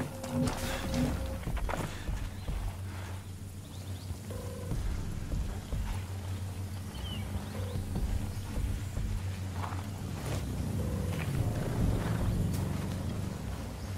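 Footsteps crunch on gravel and dry grass.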